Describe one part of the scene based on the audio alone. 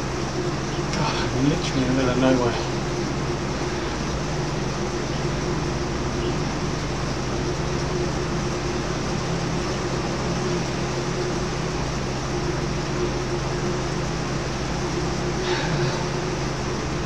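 A man speaks briefly and breathlessly close to a microphone.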